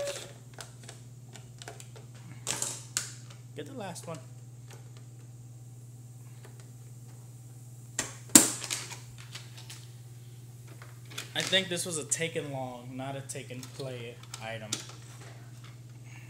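Plastic toy track pieces clack and rattle on a table.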